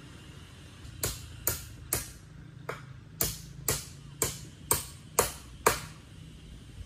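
A hammer knocks sharply on bamboo in a quick series of blows.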